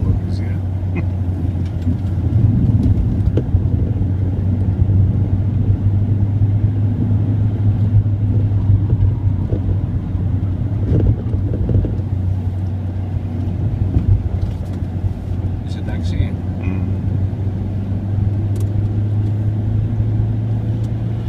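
A car engine drones under load, heard from inside the cabin.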